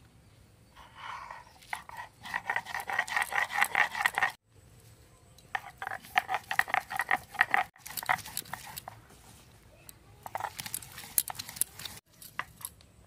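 A stone grinds and scrapes rhythmically against a flat stone.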